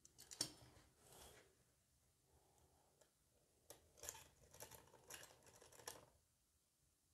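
Small metal parts click and scrape as a tool works on a lock.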